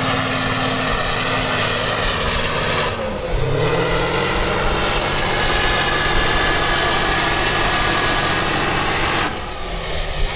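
A heavy tractor engine roars loudly at full power, then dips and surges again.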